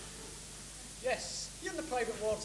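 A young man speaks loudly on a stage, heard from a distance in a large room.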